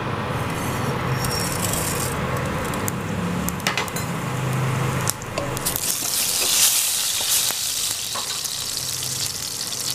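Mustard and cumin seeds sizzle and crackle in hot oil.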